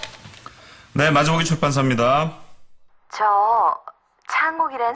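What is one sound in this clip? A middle-aged man speaks into a telephone.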